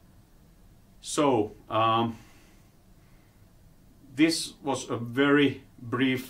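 An older man lectures calmly through a microphone, pausing between phrases.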